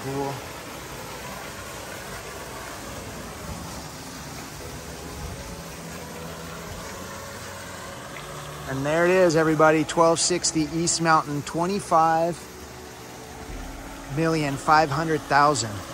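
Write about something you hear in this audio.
A fountain splashes steadily into a pool.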